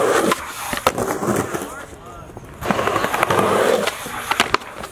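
Skateboard wheels roll loudly over rough pavement.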